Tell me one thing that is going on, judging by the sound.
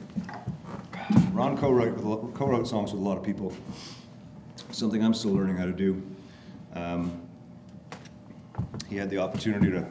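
A man talks calmly to an audience.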